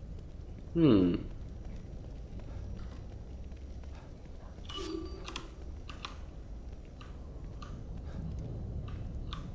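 Footsteps tread on pavement.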